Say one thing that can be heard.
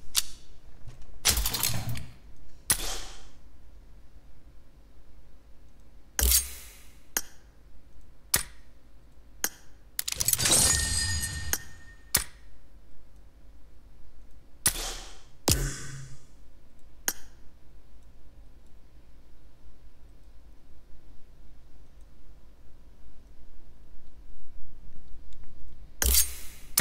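Game menu buttons click and chime.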